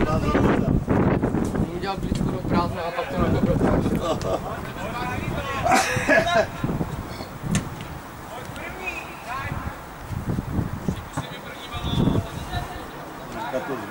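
Young men shout to each other across an open field.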